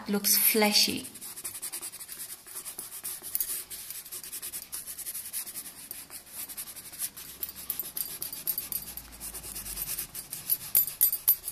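A coloured pencil scratches rapidly on paper.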